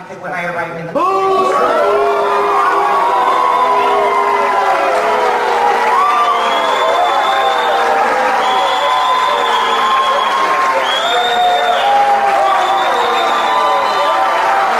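A woman sings through a microphone.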